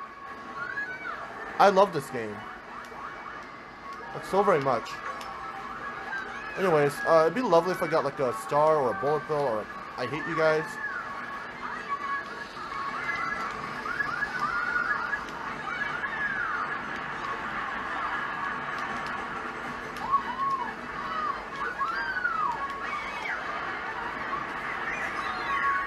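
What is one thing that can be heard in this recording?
A video game's engines whine through a television speaker.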